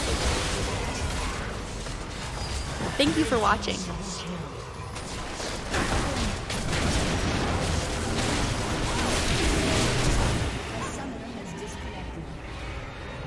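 Magic blasts and weapon hits clash in quick bursts.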